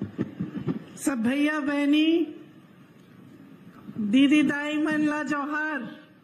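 A woman speaks forcefully into a microphone over loudspeakers.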